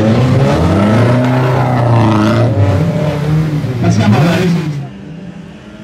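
A racing car engine revs loudly up close.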